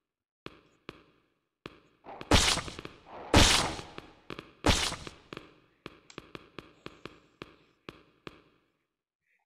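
Footsteps tap on a hard tiled floor.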